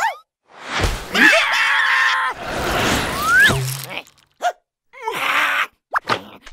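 A cartoon mouse squeaks and chatters excitedly in a high voice.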